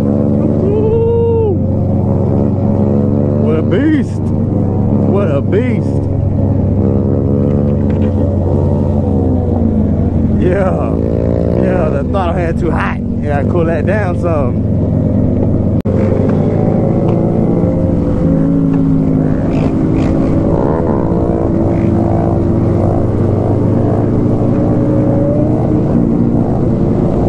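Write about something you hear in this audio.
Other motorcycles rev and roar nearby.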